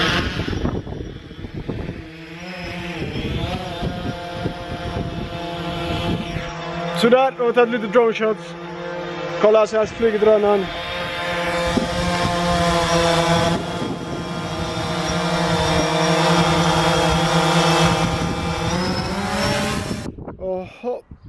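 A drone's propellers hum and whine steadily nearby.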